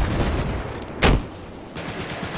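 A rocket launcher fires with a heavy blast.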